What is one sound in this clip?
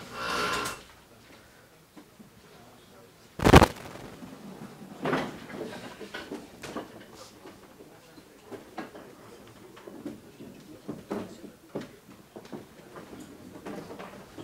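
A man lectures through a microphone in a large, echoing room.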